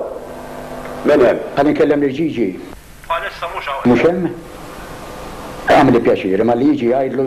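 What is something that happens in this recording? An elderly man speaks into a telephone handset.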